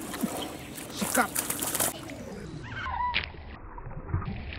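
Water splashes sharply at the surface.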